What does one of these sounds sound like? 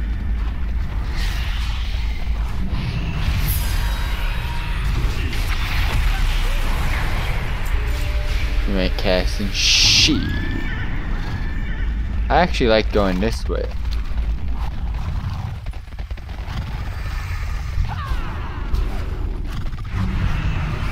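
Video game combat sounds and spell effects play.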